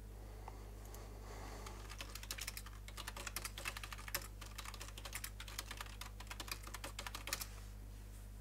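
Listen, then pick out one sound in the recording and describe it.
Soft footsteps patter quickly on the ground.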